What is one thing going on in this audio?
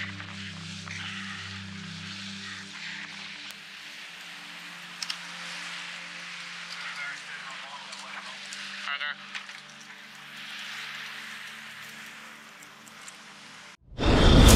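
Waves splash and rush past a moving boat.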